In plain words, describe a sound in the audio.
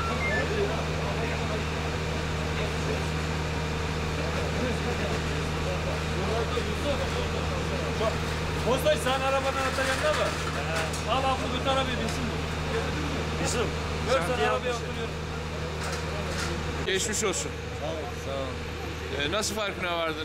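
A vehicle engine idles steadily nearby.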